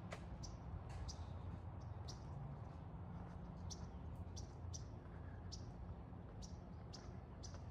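Water splashes and trickles in a fountain nearby.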